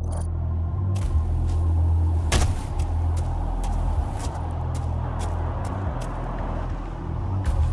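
Footsteps crunch on dirt at a steady walking pace.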